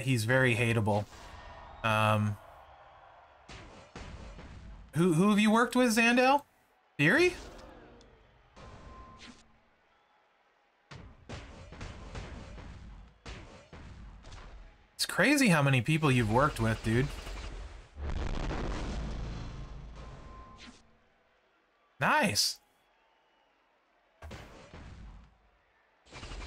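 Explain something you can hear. Blows and body slams thud in a wrestling video game.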